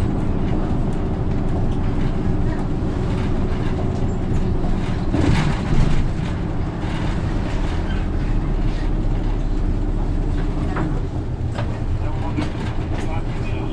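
A bus engine hums steadily from inside the bus as it drives along.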